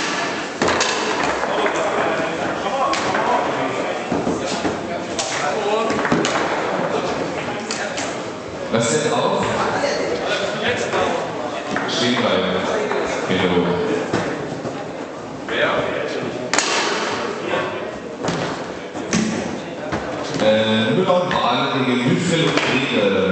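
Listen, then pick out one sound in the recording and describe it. A foosball ball clacks sharply against rods and table walls.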